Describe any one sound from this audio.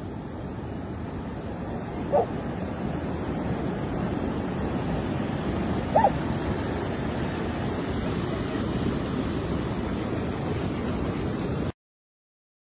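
Ocean waves wash steadily onto a beach.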